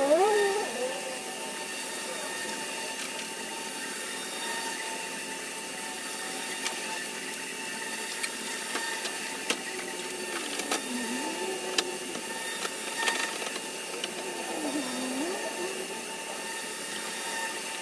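Metal tools clink and knock under a car's hood.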